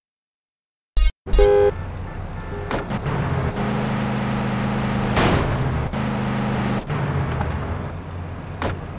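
A car engine starts and idles with a low hum.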